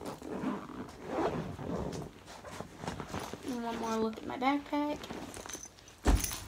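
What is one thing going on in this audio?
Fabric rustles and crinkles as a plush toy is handled close by.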